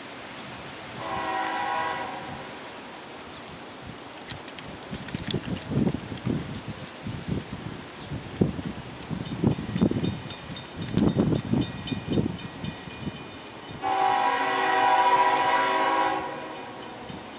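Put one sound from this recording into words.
A train horn blows loudly in long blasts.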